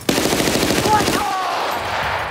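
A rifle fires a rapid burst of shots close by.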